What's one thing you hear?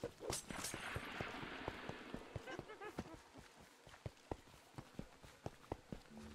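Footsteps patter steadily across stone.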